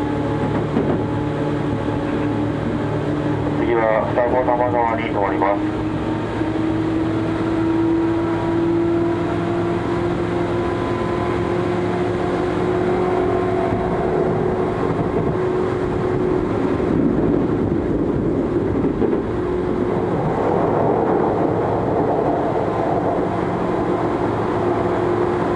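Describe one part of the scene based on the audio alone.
A train's motor hums with a slowly rising whine.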